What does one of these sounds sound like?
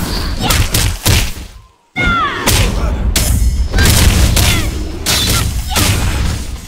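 Heavy weapon blows strike and thud in a fight.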